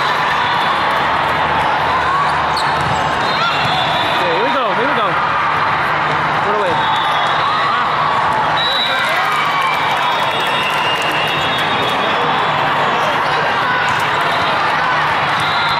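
Young women's voices call out and chatter, echoing in a large hall.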